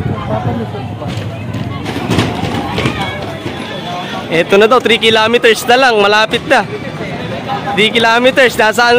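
A crowd of people chatters along a street outdoors.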